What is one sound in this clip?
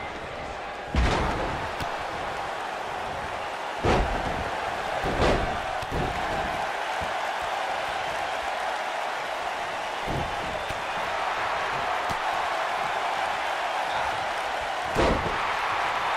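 Wrestlers' bodies slam heavily onto the ring mat now and then.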